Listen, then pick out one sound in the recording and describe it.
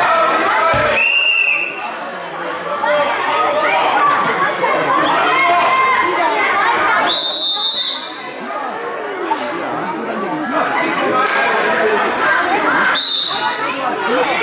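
A referee blows a short, sharp whistle several times.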